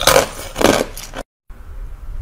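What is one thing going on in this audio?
A young woman bites into food with a loud crunch close to a microphone.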